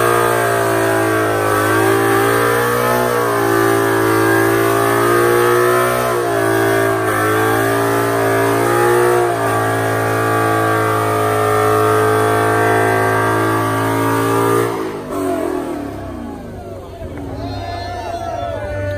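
A car engine roars loudly at high revs, then drops to a lower rumble.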